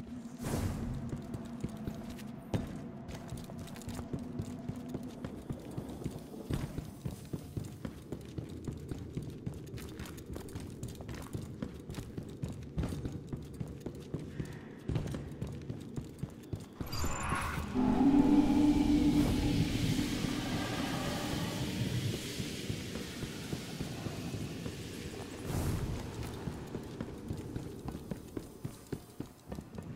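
Footsteps crunch steadily over rocky ground.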